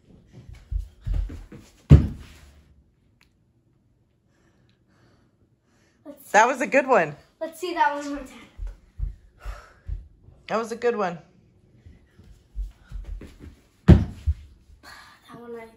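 Bare feet thump on a carpeted floor.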